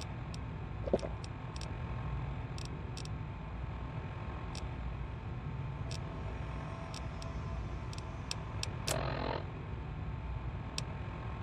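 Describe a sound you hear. Short electronic clicks tick as menu items are selected.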